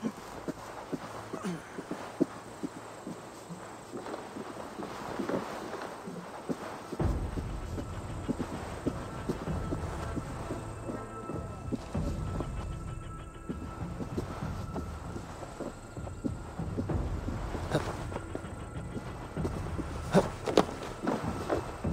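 Footsteps creak on wooden planks.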